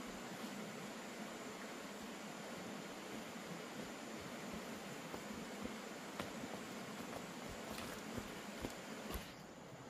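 Footsteps crunch on dry leaves and dirt down a slope.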